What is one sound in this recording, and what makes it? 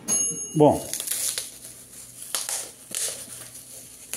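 A knife blade slices through plastic wrap.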